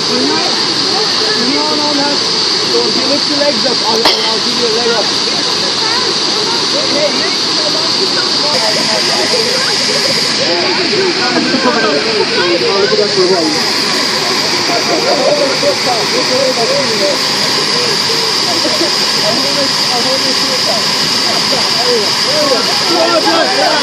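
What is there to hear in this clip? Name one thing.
A crowd of young men and women chatter and laugh nearby, outdoors.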